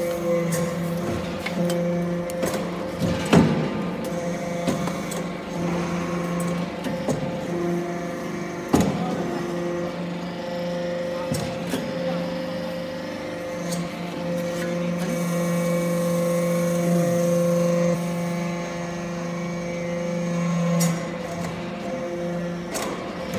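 A large machine hums and drones steadily in an echoing hall.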